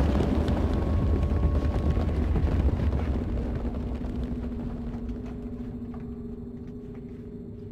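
Small footsteps crunch on loose gravel.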